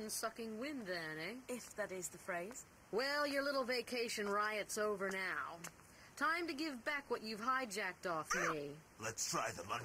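A woman speaks coldly and mockingly, close by.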